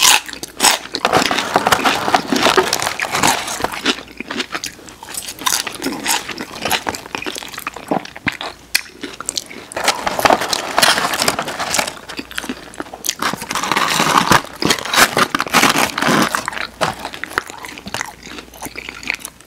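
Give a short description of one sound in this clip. Two people chew crispy fried chicken close to a microphone.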